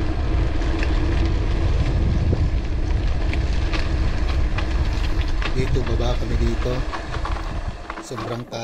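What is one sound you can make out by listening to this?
Wind rushes over the microphone of a speeding bicycle.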